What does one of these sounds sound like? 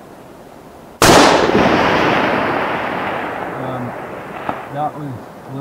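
A falling rock crashes hard against a cliff, booming and echoing as the roar slowly fades.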